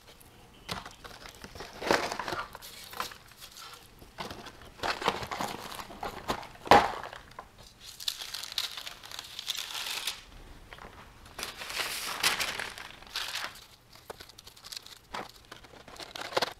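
A foil pouch crinkles and rustles as it is handled.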